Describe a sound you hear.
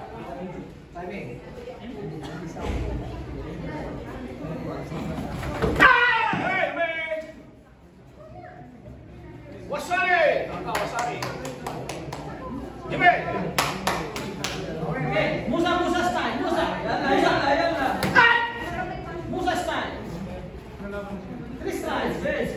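Feet thump and kicks smack on padding.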